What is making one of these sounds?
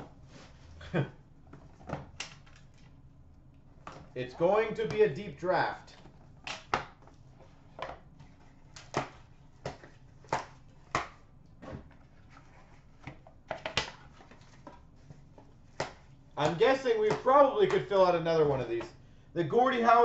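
Cardboard card boxes tap and click as hands handle them.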